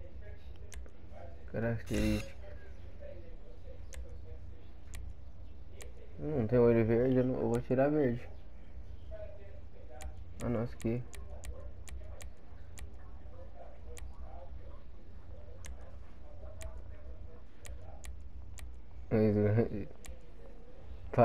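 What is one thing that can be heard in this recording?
Short soft clicks tick now and then.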